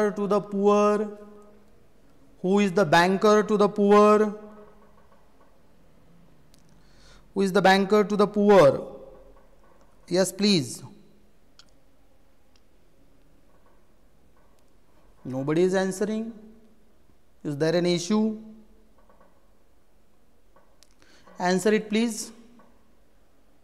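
A middle-aged man speaks calmly and slowly into a close microphone, in short bursts with long pauses.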